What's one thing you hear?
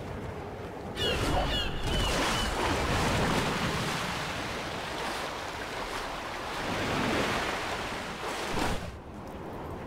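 Water splashes and surges loudly under a rider on a wave.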